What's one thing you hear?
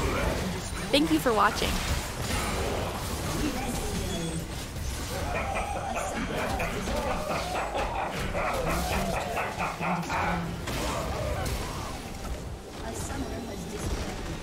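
Magical blasts and hits crackle and burst in quick succession during a fight.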